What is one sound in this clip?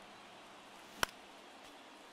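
A baseball smacks into a catcher's glove with a sharp pop.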